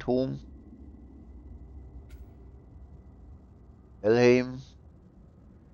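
A short, bright musical chime sounds twice.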